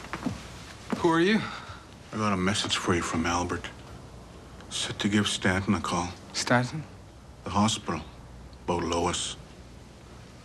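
A middle-aged man speaks in a low, calm voice, close by.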